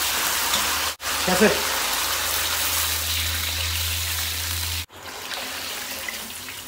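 Water pours into a hot wok with a loud hiss.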